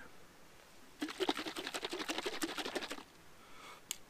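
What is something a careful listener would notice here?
Hands rub together briskly.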